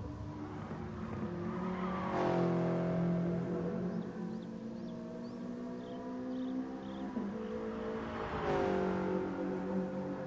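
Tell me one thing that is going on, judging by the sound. A racing car engine roars and revs up and down through the gears.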